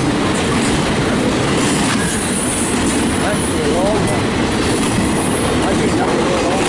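An intermodal freight train rumbles past close by, its wheels clattering over the rails.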